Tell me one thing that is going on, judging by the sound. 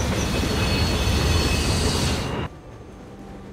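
A train rumbles loudly along the tracks.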